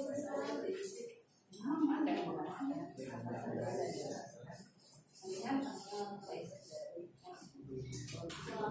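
A woman speaks to a group, heard from across a room with a slight echo.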